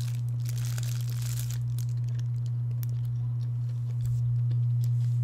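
A plastic wrapper crinkles softly.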